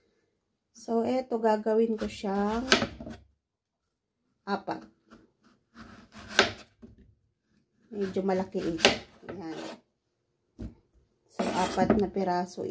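A knife slices through a firm vegetable and taps a wooden board.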